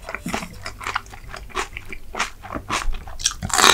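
Chopsticks click against a metal bowl.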